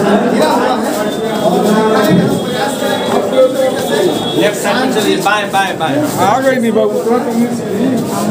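Several men talk at once in the background.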